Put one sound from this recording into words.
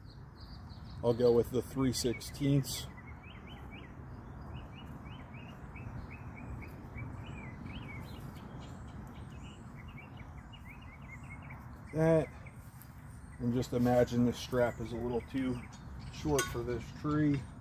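A man talks calmly and close by, in short bursts.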